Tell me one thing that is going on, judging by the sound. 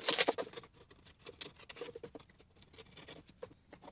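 A small blade scrapes along thin wood.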